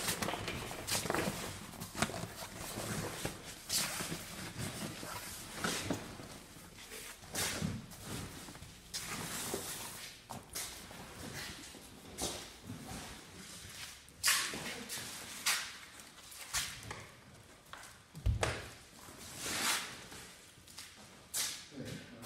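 Fabric rustles and crinkles as it is pushed and tucked by hand.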